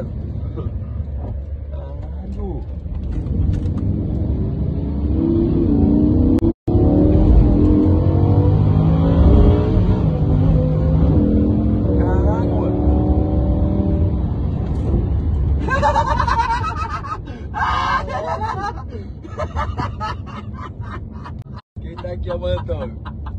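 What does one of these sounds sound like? A car engine rumbles low and roars as it revs up while driving.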